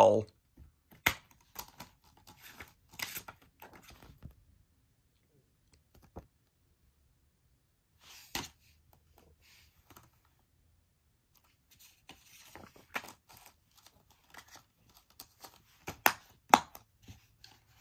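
A plastic disc case clicks and rattles.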